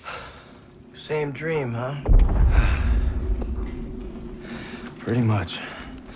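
A young man speaks in a strained, pained voice close by.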